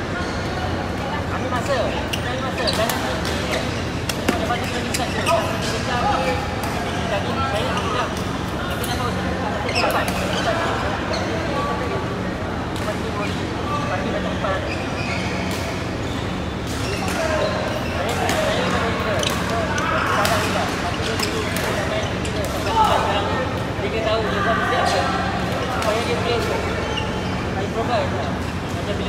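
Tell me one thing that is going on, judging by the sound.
Rackets smack shuttlecocks in sharp, quick hits across a large echoing hall.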